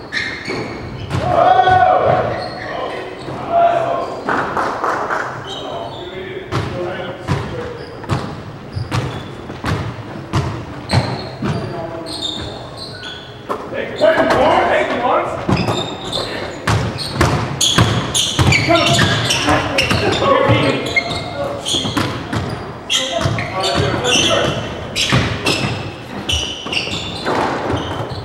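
A racquet strikes a ball with a sharp crack.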